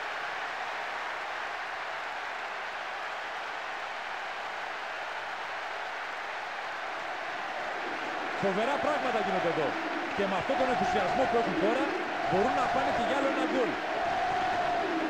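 A large crowd roars steadily in a stadium.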